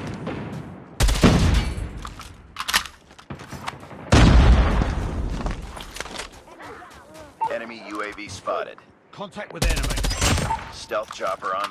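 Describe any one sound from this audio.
Gunfire bursts loudly in rapid shots.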